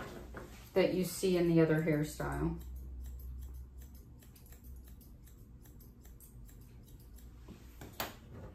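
Grooming scissors snip through curly dog hair.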